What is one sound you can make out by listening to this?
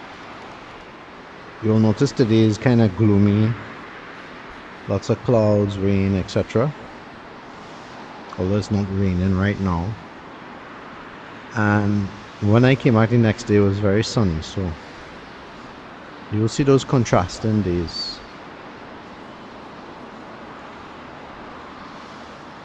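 Traffic hums steadily on a road below.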